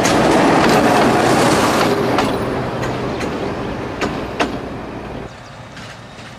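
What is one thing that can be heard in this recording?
A diesel locomotive rumbles loudly close by and passes.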